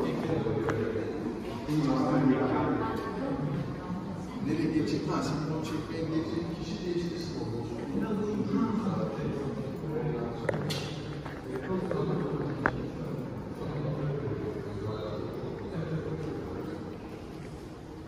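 Children and adults talk and chatter nearby in a reverberant hall.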